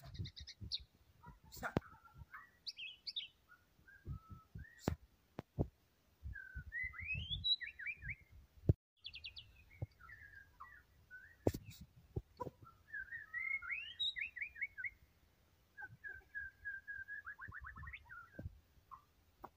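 A songbird sings a varied song of whistles, trills and chirps close by.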